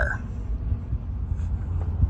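A vehicle engine runs as it drives along pavement, heard from inside the cab.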